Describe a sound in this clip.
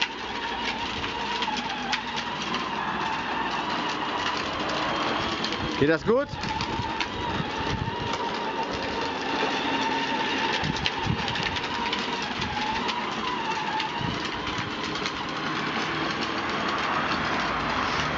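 Plastic wheels rumble over paving stones.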